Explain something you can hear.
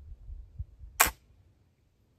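A muzzle-loading rifle fires a single loud shot.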